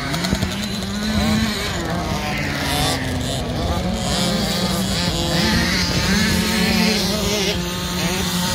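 Small dirt bike engines buzz and rev outdoors.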